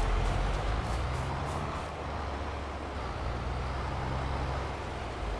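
Footsteps crunch on soft, dry soil.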